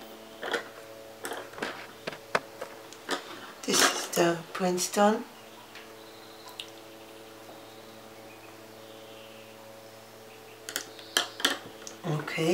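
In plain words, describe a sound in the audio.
Wooden paintbrushes click softly as they are set down on a hard surface.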